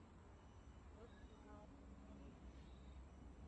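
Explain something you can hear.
A man speaks briefly nearby.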